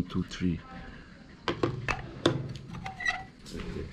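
A box is set down on a table with a knock.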